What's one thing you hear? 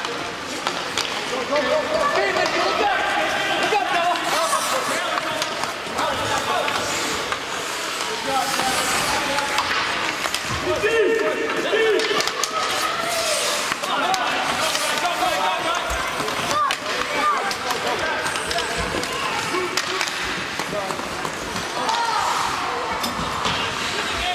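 Ice skates scrape and carve on ice.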